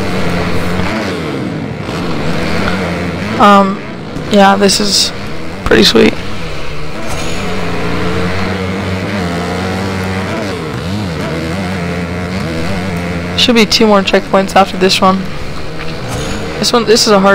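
A motorbike engine drones and revs steadily.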